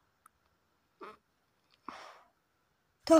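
A young boy giggles close by.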